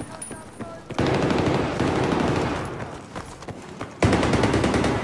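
A rifle fires with a loud boom that rumbles away.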